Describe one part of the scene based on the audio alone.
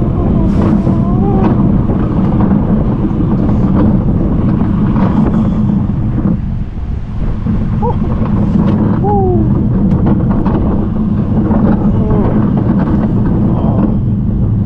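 Wind rushes past the microphone on a moving ride.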